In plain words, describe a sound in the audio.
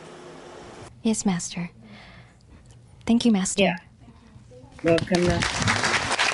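A young woman speaks politely into a microphone.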